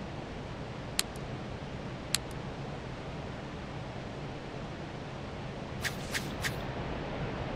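Game menu clicks sound as options are selected.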